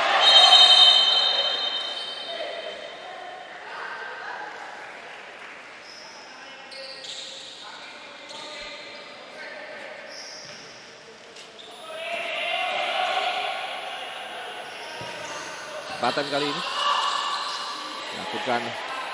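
A crowd cheers loudly in a large echoing hall, then quiets.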